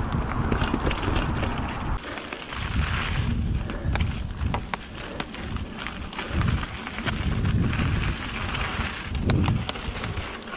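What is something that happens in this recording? A bicycle's chain and frame rattle over bumps.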